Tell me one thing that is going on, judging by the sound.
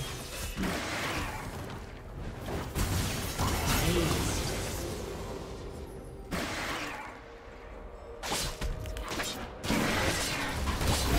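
Magic blasts whoosh and crash in a fast game battle.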